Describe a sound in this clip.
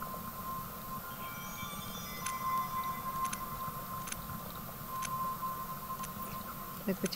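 Short electronic beeps and clicks sound now and then.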